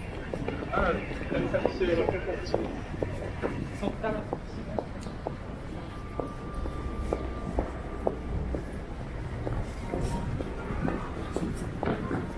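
A low city hum carries along an outdoor street.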